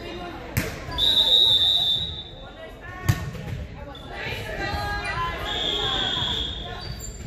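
A referee's whistle blows long and shrill.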